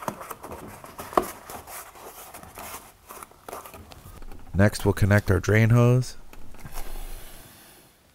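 A plastic panel creaks and knocks as hands handle it.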